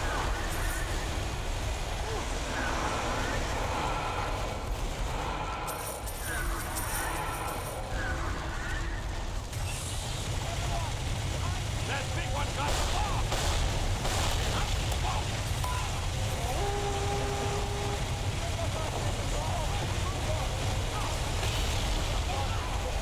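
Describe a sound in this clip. Gunfire and explosions crackle constantly.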